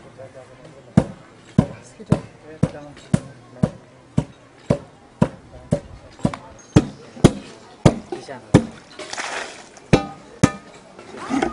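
A pole thuds steadily into wet earth.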